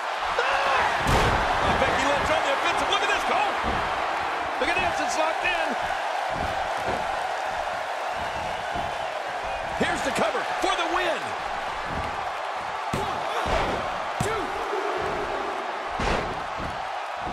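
Bodies slam heavily onto a wrestling mat with loud thuds.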